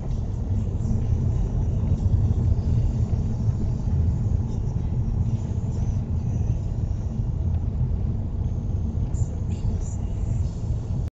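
A car engine hums steadily as it drives slowly.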